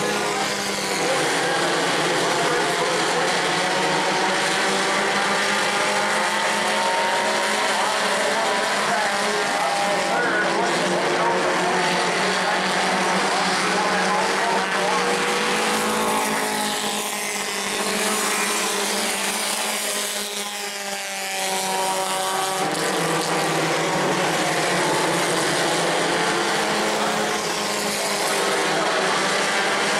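Race car engines roar loudly as they speed around a track.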